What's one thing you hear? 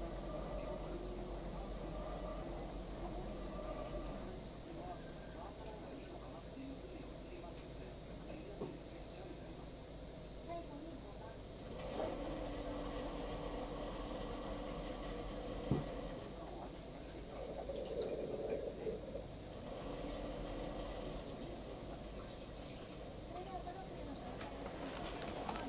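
A crowd murmurs in the distance outdoors.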